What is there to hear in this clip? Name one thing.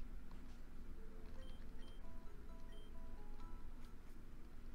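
A short chiming video game melody plays.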